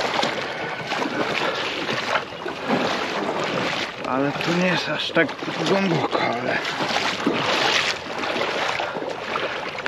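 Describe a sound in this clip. Tyres splash through shallow water on a flooded road.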